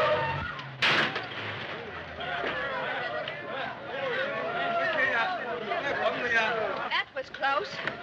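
A crowd chatters and shouts excitedly.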